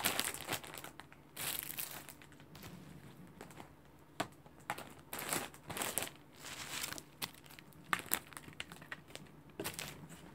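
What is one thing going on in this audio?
Plastic packaging crinkles and rustles as it is handled.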